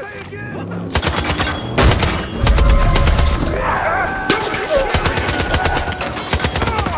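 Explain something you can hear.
Rapid gunfire rattles loudly.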